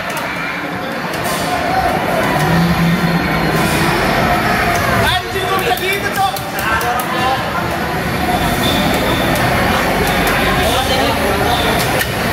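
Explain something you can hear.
Music plays loudly from arcade game loudspeakers.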